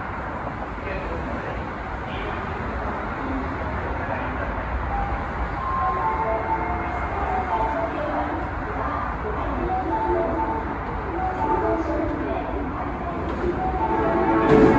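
Road traffic hums steadily nearby.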